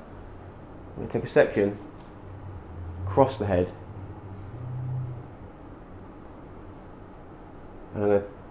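A man speaks in short calm phrases close by.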